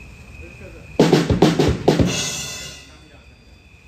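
A drummer bangs the drums and crashes the cymbals loudly.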